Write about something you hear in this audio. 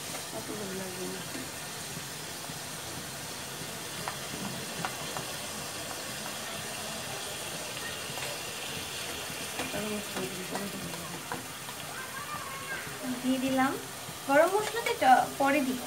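A spoon taps and scrapes against a metal pan.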